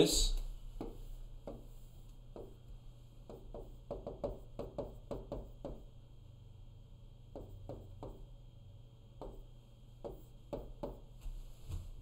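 A marker taps and squeaks softly on a board.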